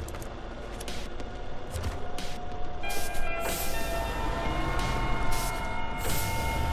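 A heavy truck engine rumbles and strains.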